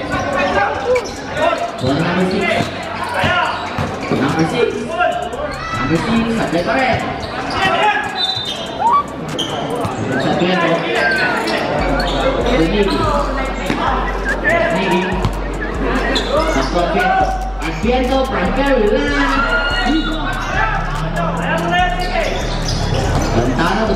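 A large crowd chatters and cheers in an open, echoing space.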